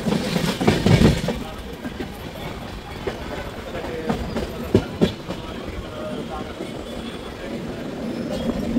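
Wind rushes past an open train door.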